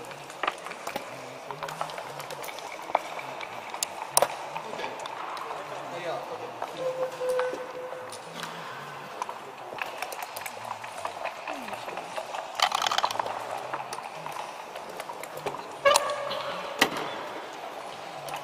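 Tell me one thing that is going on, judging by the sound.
Game pieces click and clack against a wooden board.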